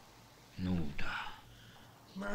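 A man speaks with surprise, close by.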